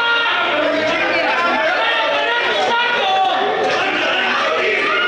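A crowd of spectators shouts and cheers loudly nearby.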